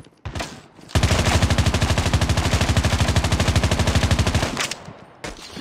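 A rifle fires rapidly in a long burst.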